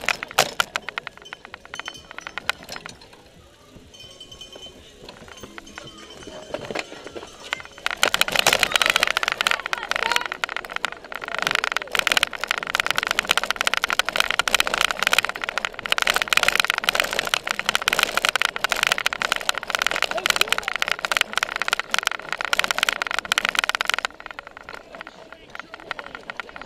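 Bicycle tyres roll and rattle over a dirt track.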